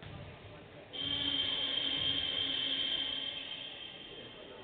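A buzzer sounds loudly through a large echoing hall.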